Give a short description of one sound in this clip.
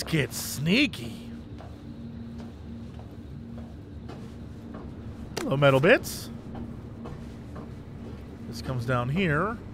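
Hands thump softly on a metal duct floor while crawling.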